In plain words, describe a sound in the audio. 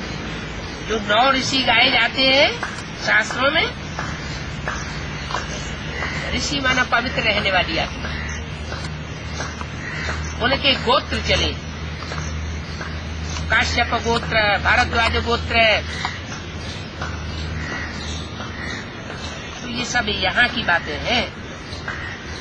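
An elderly man speaks calmly and close by, in bursts with pauses.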